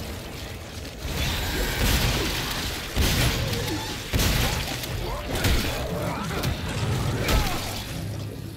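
Heavy blows strike flesh with wet, squelching thuds.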